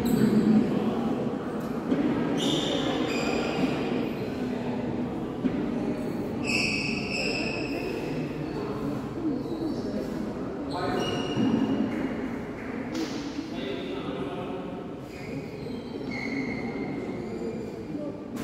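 Badminton rackets hit a shuttlecock back and forth.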